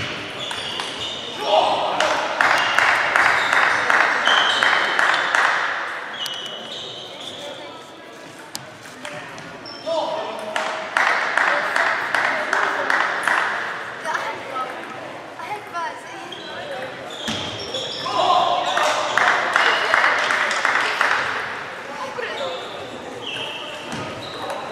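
People murmur and chatter at a distance.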